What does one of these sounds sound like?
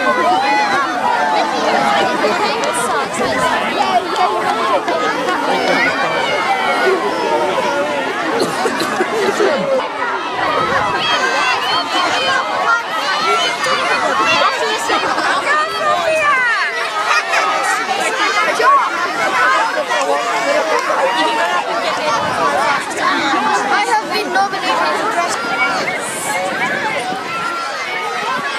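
A crowd of children shouts and cheers excitedly outdoors.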